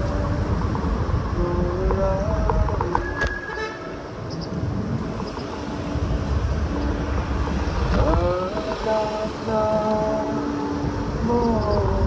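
A motorbike engine hums steadily nearby.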